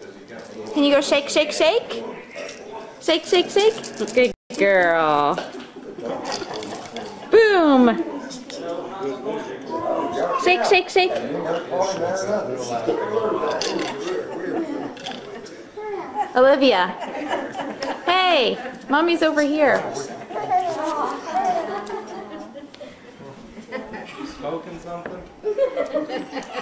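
A baby babbles and squeals up close.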